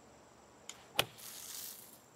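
A golf club strikes a ball with a sharp thwack.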